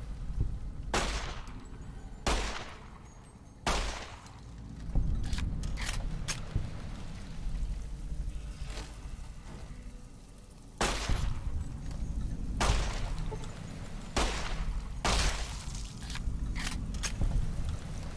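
A pistol fires loud, sharp shots that echo.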